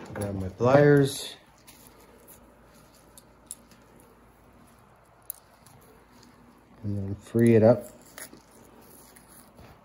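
Shears snip through bone with a crunch.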